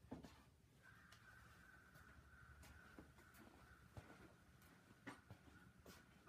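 Footsteps pass close by on a hard floor.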